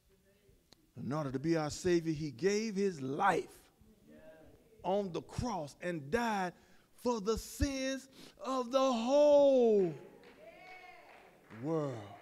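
A man preaches with animation through a microphone in an echoing hall, pausing between phrases.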